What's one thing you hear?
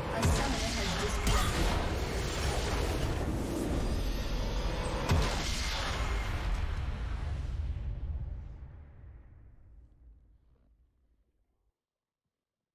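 A triumphant fanfare swells up and slowly fades away.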